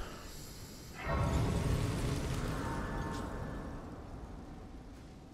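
A shimmering magical chime swells up and slowly fades.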